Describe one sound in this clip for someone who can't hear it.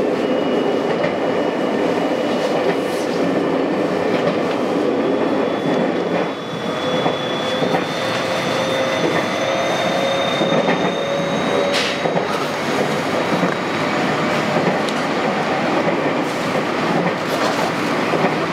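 A train rumbles steadily along the rails from inside the cab.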